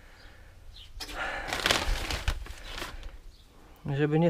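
Plastic netting rustles and crinkles as a hand pulls at it.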